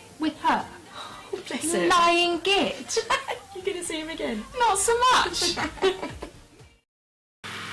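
A second woman laughs and talks nearby.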